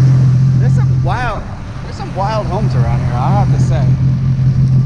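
A man speaks loudly outdoors over the engine.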